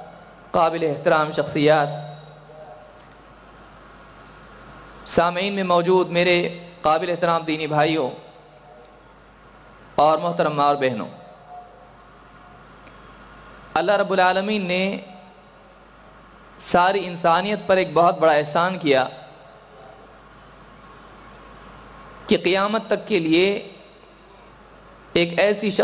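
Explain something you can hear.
A young man speaks into a microphone in short, emphatic bursts with long pauses, heard through a loudspeaker in a reverberant space.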